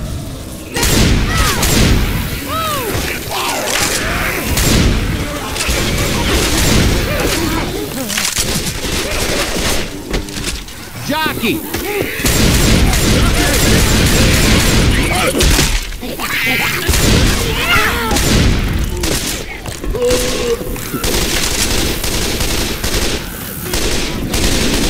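A shotgun fires loud blasts again and again.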